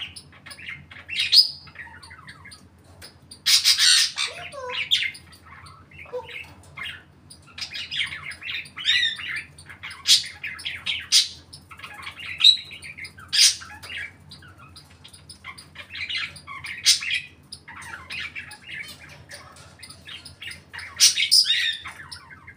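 A parrot whistles, squawks and chatters nearby.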